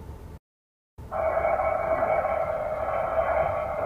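A car engine hums.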